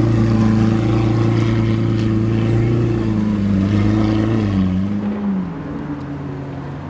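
A Lamborghini Aventador V12 with an aftermarket sports exhaust rumbles deeply.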